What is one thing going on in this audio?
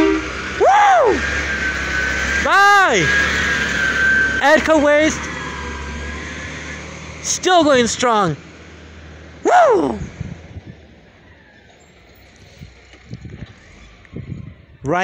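A large truck engine rumbles up close, then drives off and fades into the distance.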